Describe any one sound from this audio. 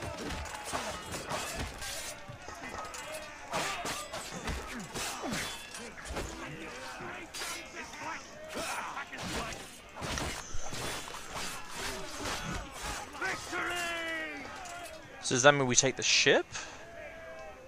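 Swords clash and clang in a fierce fight.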